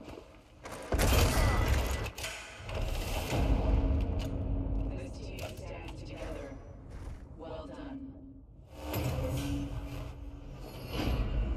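Music swells with a booming chord.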